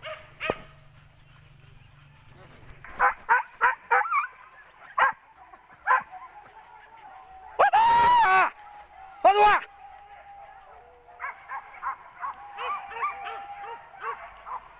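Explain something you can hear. Hunting dogs bark and yelp outdoors.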